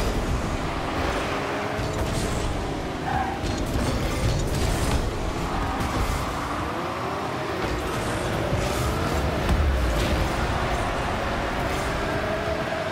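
A video game car's engine hums and glides up and down in pitch.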